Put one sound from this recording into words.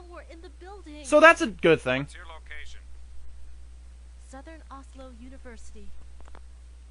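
A woman speaks anxiously into a phone.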